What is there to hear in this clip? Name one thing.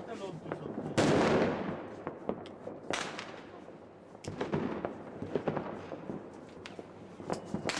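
Fireworks bang and pop sharply.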